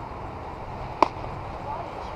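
A ball smacks into a leather glove.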